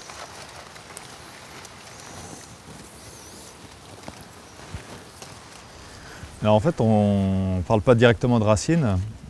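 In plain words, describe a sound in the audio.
Dry straw rustles and crackles as hands dig into soil.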